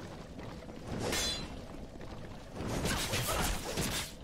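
Metal weapons clash and clang in combat.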